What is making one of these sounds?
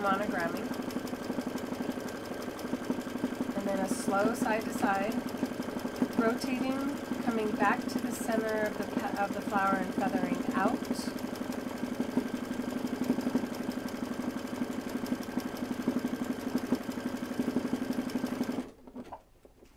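A sewing machine runs with a fast, steady whirring and tapping.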